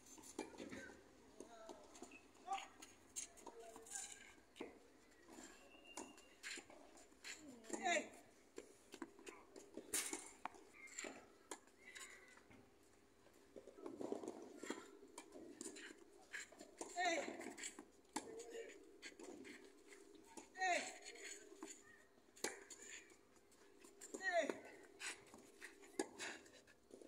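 A tennis ball is struck with a racket again and again.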